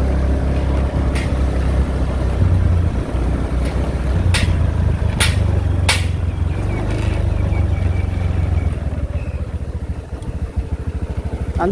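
A motorbike engine hums steadily while riding along.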